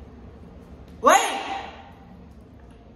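A young woman lets out a loud, rising exclamation.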